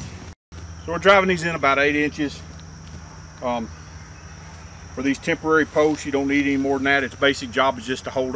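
A middle-aged man talks calmly close by, outdoors.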